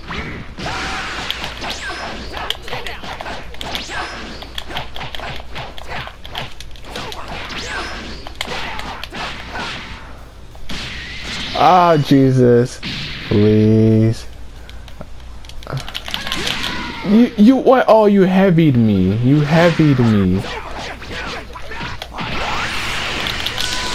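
Punches and kicks land in quick, heavy thuds.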